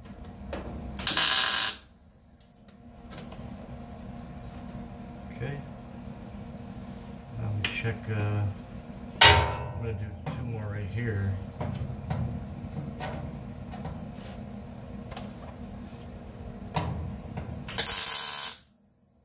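An arc welder crackles and hisses in short bursts.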